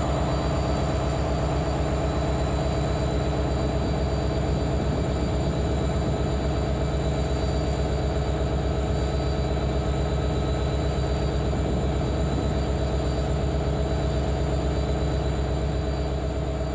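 A diesel locomotive engine rumbles and idles loudly close by.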